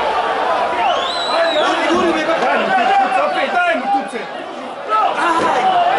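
A crowd of men chants and shouts in an open-air stadium.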